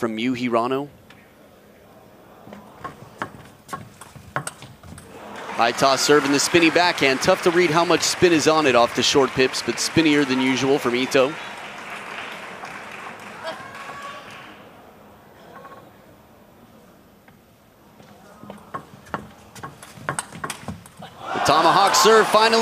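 A table tennis ball clicks back and forth off paddles and a table.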